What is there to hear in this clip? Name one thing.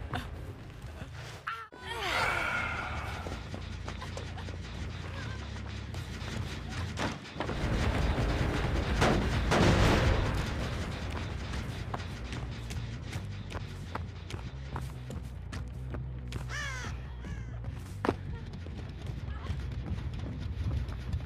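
Footsteps run over ground.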